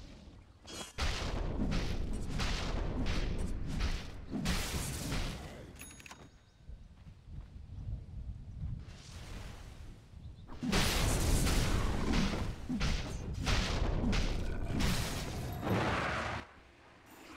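Magic blasts and impacts crackle and boom during a fight.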